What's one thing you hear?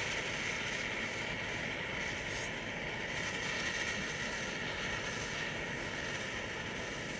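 A firework fountain hisses and crackles steadily.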